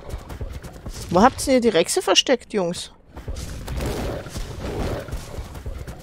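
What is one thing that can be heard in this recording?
Water splashes as an animal wades through a shallow stream.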